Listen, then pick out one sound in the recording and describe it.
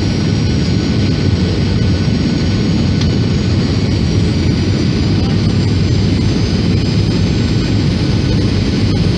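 A jet airliner's engines roar steadily from inside the cabin.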